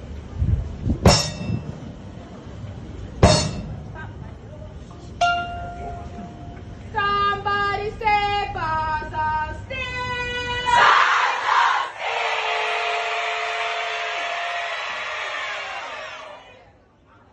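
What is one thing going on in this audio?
Steel drums ring out with bright pitched notes.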